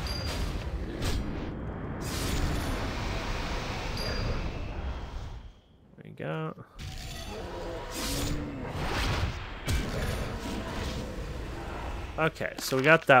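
Magic spells crackle and whoosh.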